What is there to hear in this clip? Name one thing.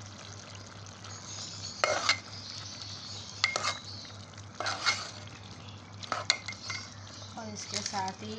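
A metal spoon scrapes and clinks against a metal pot while stirring.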